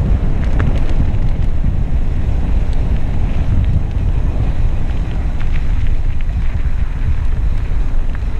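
Loose gravel crackles under mountain bike tyres.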